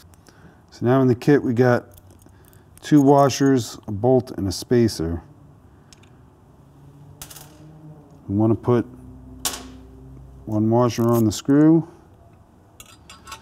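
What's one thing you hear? Small metal parts click and clink as a man handles them.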